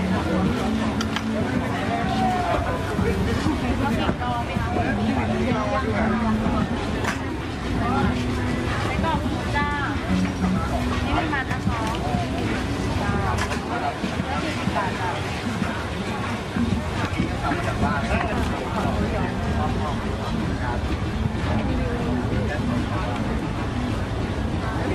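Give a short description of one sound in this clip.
A busy outdoor market crowd chatters all around.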